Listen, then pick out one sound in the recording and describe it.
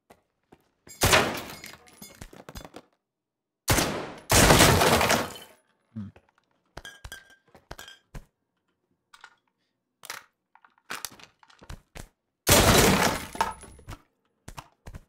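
A wooden crate smashes apart with a loud crack.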